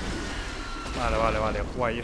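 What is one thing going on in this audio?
A sudden blast bursts.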